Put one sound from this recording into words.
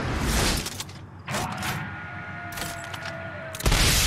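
A rocket launcher fires with a sharp whoosh.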